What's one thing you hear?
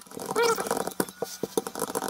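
A rolling pin rolls over dough.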